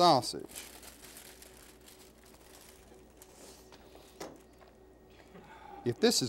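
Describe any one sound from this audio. Shredded cheese patters softly into a foil pan.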